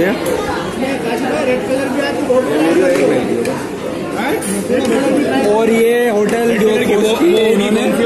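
A crowd of people chatter nearby in a busy room.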